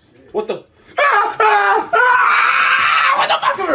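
Young men laugh and shout loudly with excitement.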